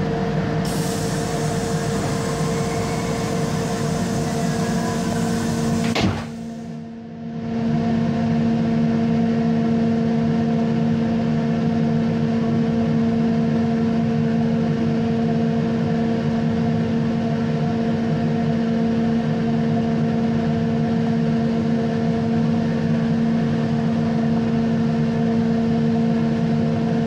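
A freight train rumbles past steadily with a loud, droning hum.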